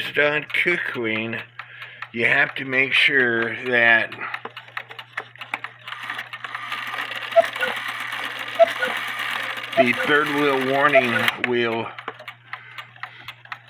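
A clock mechanism ticks steadily.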